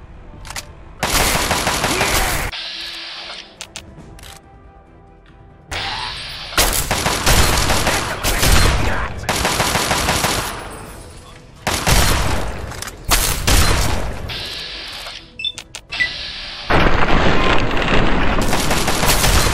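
Shotgun blasts boom and echo.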